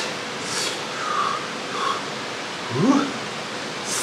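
A man slurps noodles noisily.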